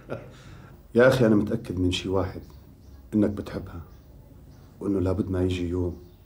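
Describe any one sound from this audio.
A young man answers calmly, close by.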